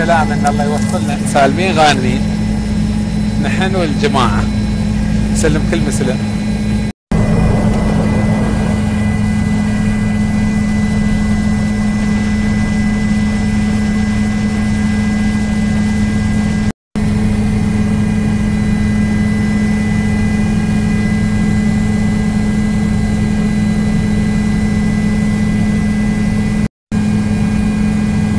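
A helicopter engine drones steadily from inside the cabin.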